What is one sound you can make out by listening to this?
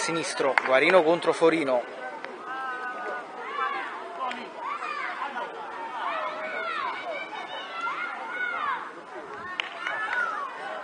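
Children shout and call out across an outdoor pitch.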